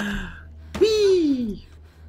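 Hands grab and slap onto a ledge.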